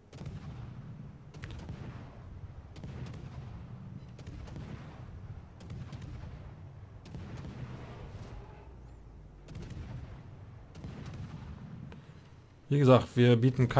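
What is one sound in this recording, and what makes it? Heavy naval guns fire in repeated deep booms.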